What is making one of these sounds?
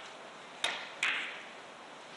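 Billiard balls clack sharply together.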